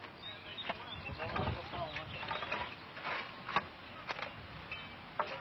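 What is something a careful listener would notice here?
Shovels scrape and chop into stony soil.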